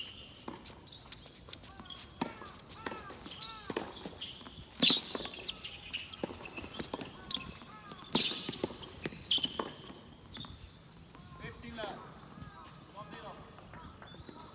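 Tennis shoes squeak on a hard court.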